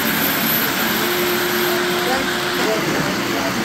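A model train whistle toots briefly.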